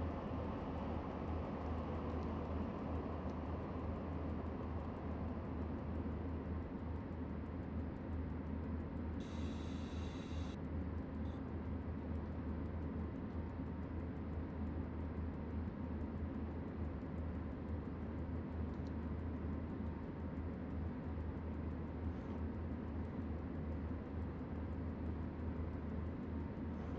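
A locomotive's electric motors hum low and steady as the train rolls along the track.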